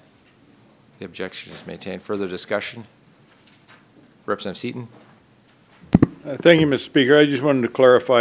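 A man speaks formally through a microphone in a large room.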